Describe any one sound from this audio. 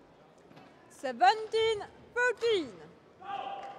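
A young woman shouts loudly.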